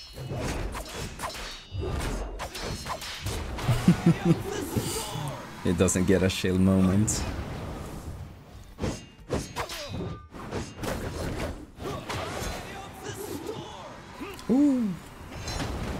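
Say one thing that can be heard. Weapons thud and clang in a fast game fight.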